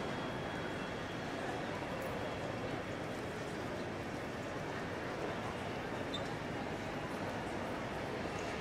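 Many people talk in a large echoing hall as a steady murmur.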